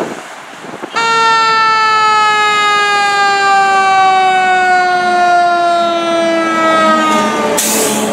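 A fire engine's siren wails loudly and slowly winds down.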